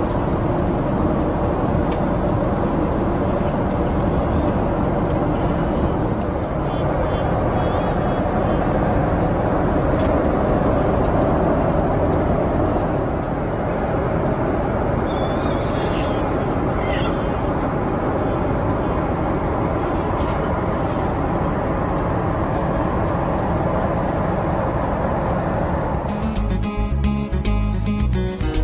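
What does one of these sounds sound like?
A jet engine drones steadily inside an aircraft cabin.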